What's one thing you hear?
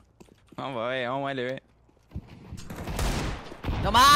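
A gun fires a shot close by.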